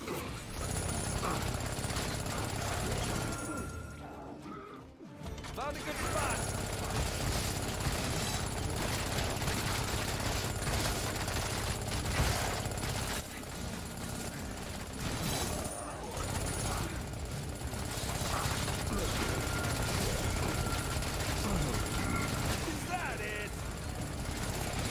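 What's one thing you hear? Game music and combat effects play throughout.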